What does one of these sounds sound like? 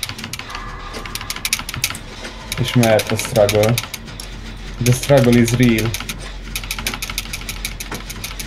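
Metal parts of an engine rattle and clank as they are worked on.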